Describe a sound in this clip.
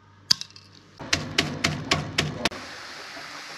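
Walnut shells crack.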